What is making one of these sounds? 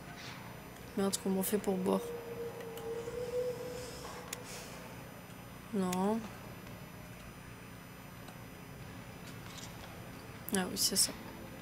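A young woman speaks into a microphone in short bursts.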